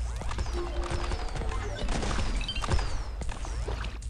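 Small explosions pop and crackle.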